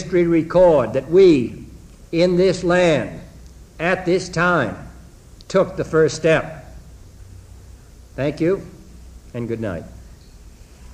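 A man speaks slowly and gravely into a microphone, in short measured phrases.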